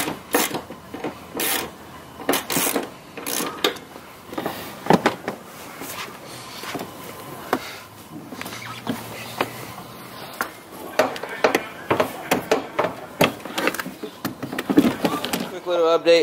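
Plastic panels knock and clatter as a seat is moved about.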